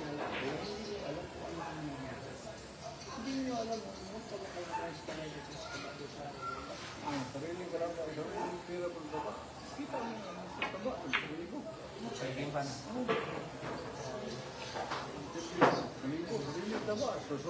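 A crowd of people chatter throughout in a busy room.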